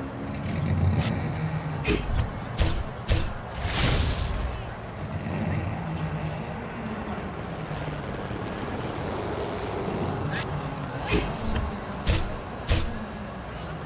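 Short electronic clicks tick now and then.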